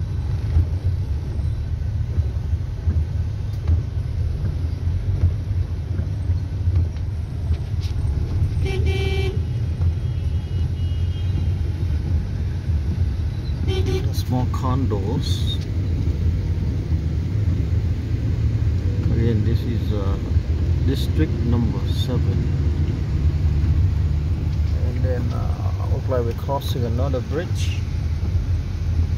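A vehicle engine rumbles low and steady from inside.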